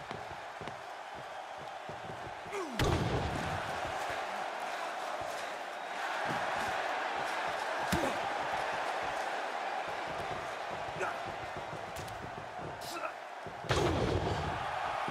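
A crowd cheers steadily in a large arena.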